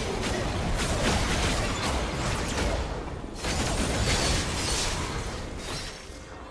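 Game spell effects crackle and boom during a fight.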